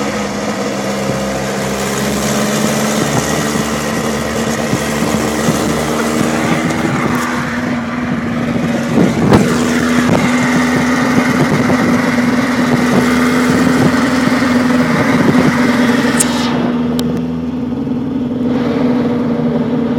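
A racing car engine drones loudly close by.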